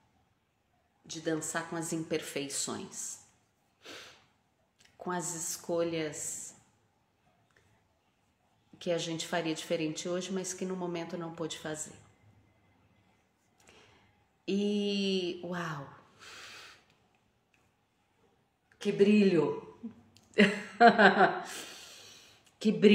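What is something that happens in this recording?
A woman speaks calmly and closely, in short phrases with pauses.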